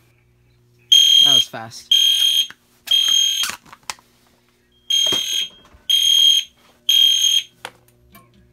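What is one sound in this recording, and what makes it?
A smoke alarm beeps loudly in short repeated bursts.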